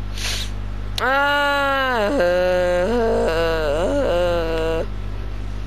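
A large furry creature lets out a long, loud, warbling roar.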